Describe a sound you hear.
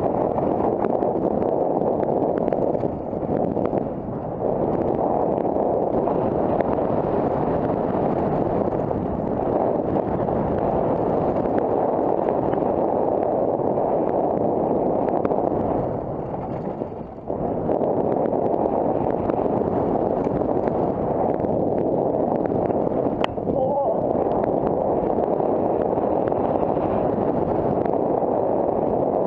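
Wind rushes past a helmet at speed.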